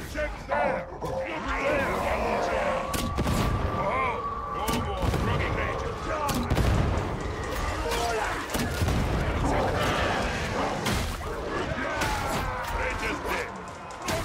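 Gunfire rattles rapidly in bursts.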